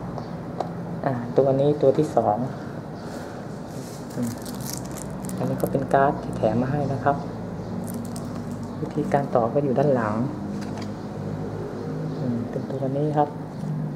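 Cardboard packaging rustles and scrapes as hands handle it.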